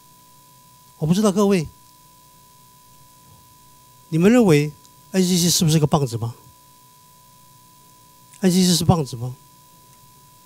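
An older man speaks in short bursts through a microphone.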